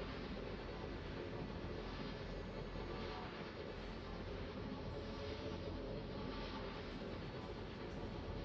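Waves wash steadily against a moving ship's hull.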